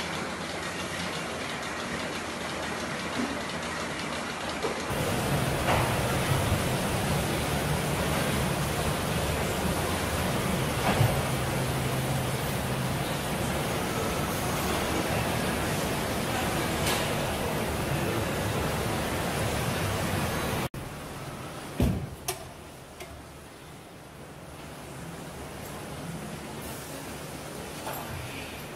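Milking machines hum and hiss steadily.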